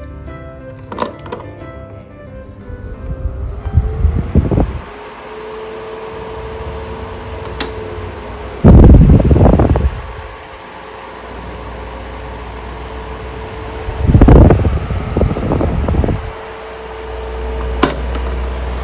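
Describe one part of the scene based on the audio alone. A button on an electric fan clicks.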